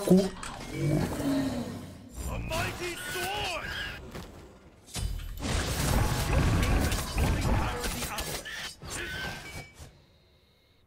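Game combat effects whoosh and burst.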